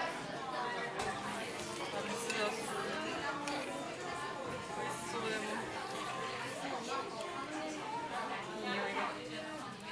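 A metal spoon scrapes and clinks in a stone pot.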